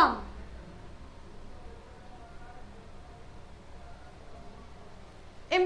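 A young woman speaks in a clear teaching voice, close to the microphone.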